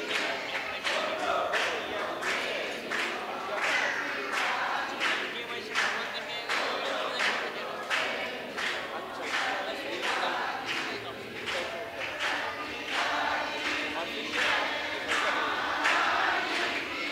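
A crowd of men and women sings together.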